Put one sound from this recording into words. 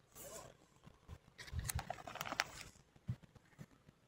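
A plastic binder page rustles as it is turned.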